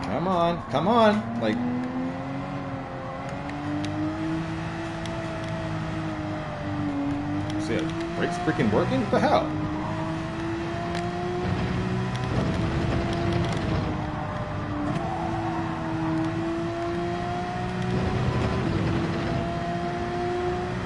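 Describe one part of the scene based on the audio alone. A racing car engine roars steadily, its pitch rising through the gears and dropping at each shift.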